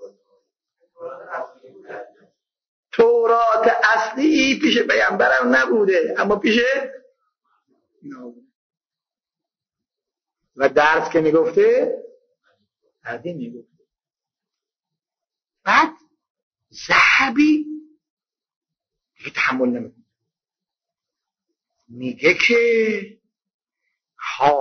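An elderly man preaches into a microphone in short, measured phrases with pauses.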